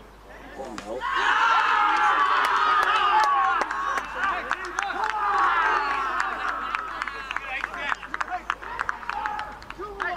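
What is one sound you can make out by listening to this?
Young men cheer and shout excitedly after a goal.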